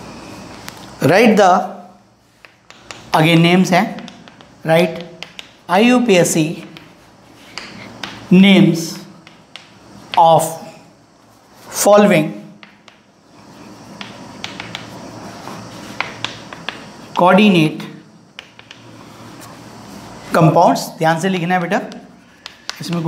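A man speaks slowly and clearly, as if dictating.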